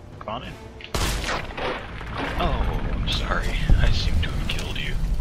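Heavy melee blows land with dull thuds.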